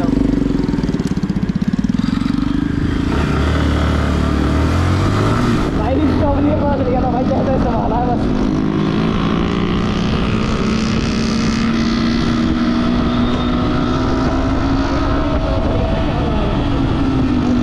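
A motorcycle engine revs and accelerates up close.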